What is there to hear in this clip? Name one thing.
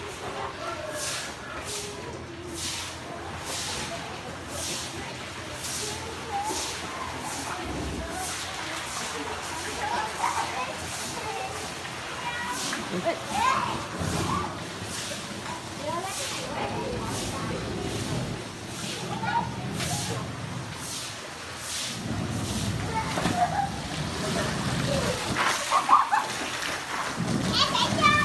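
Young children shout and laugh nearby.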